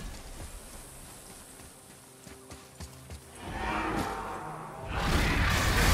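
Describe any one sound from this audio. Footsteps run over grass and stone.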